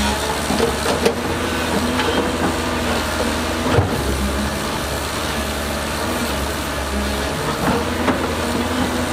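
Metal clanks sharply as an excavator bucket moves.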